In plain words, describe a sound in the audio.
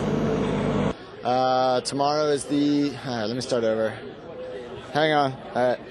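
A man speaks calmly into a microphone, close and clear.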